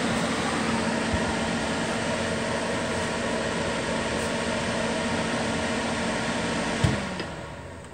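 An electric heater fan whirs and hums steadily, then cuts off.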